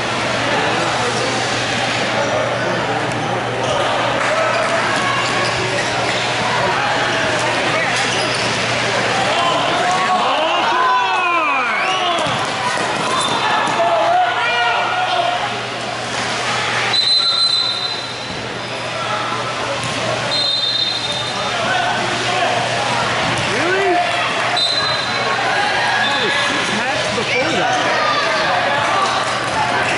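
Young players shout and call out across an echoing indoor hall.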